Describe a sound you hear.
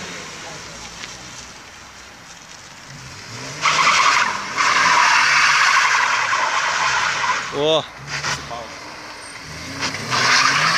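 A car engine revs hard and drones steadily.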